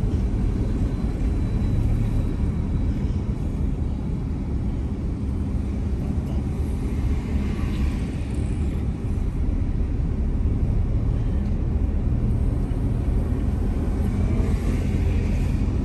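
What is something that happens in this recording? Motorcycle engines drone nearby.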